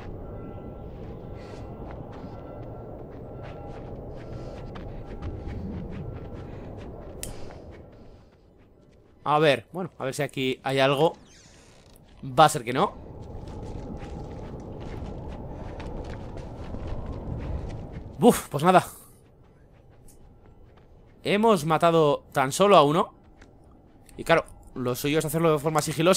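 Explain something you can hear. Footsteps shuffle softly over a gritty floor.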